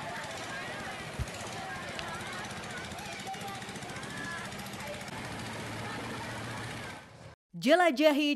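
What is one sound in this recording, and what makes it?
A boat motor hums steadily on a river.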